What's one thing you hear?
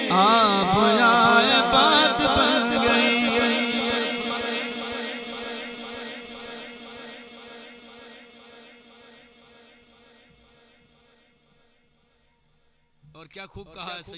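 A man chants in a long, wavering voice through a loudspeaker, slowly fading away.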